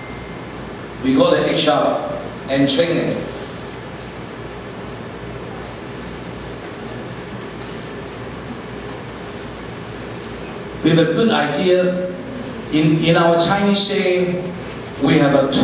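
A man speaks into a microphone through loudspeakers in an echoing hall, in bursts with long pauses.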